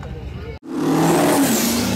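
A diesel truck engine roars loudly.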